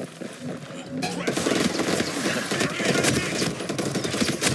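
A gun fires rapid bursts at close range.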